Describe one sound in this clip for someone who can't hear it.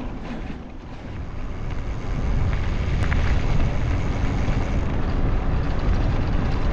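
Wind buffets a microphone outdoors.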